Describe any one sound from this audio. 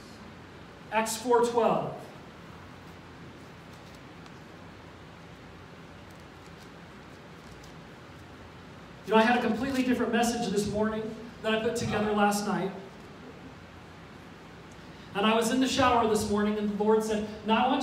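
A middle-aged man speaks calmly into a microphone, heard over loudspeakers in a large room, with pauses between phrases.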